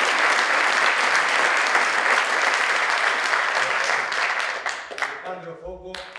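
A group of performers clap their hands, in a lively burst of applause that fades away.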